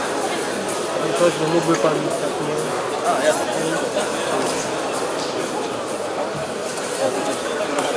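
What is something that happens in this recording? An audience claps as a trophy is handed over.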